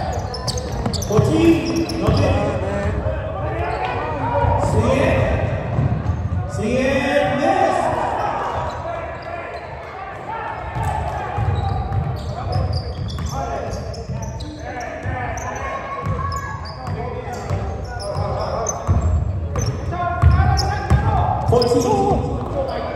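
Basketball shoes squeak on a hardwood floor in a large echoing gym.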